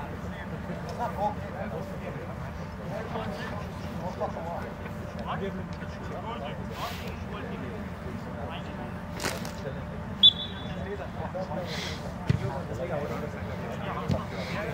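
Several men shout to each other from a distance outdoors.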